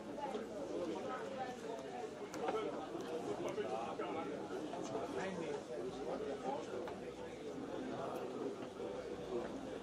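Several adults chatter close by outdoors.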